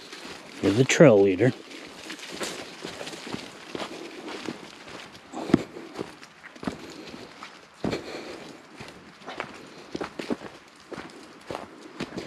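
Footsteps crunch on a leafy dirt path.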